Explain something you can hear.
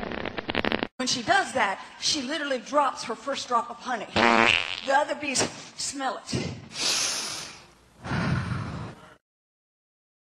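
A woman speaks excitedly into a microphone.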